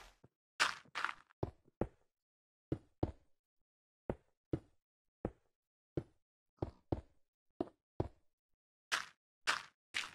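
Stone blocks knock sharply as they are set down.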